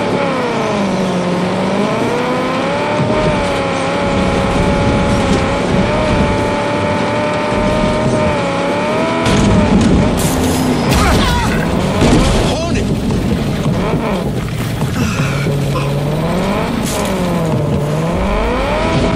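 A car engine hums and revs up and down as the car drives over rough ground.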